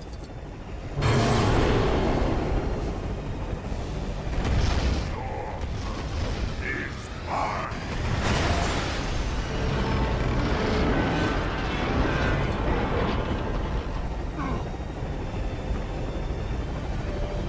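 A loud energy beam blasts with a deep, roaring rumble.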